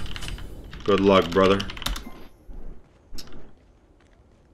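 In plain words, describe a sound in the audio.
Game sound effects clash and whoosh.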